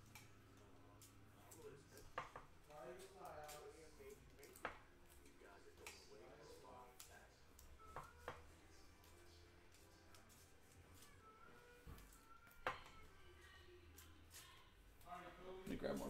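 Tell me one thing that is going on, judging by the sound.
Trading cards rustle and shuffle in hands.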